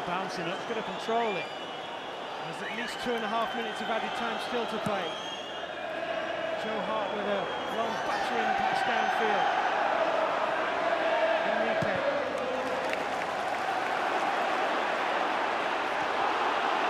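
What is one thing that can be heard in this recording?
A large stadium crowd sings and chants loudly.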